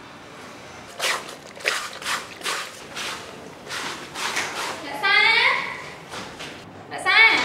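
Water splashes as clothes are scrubbed in a basin.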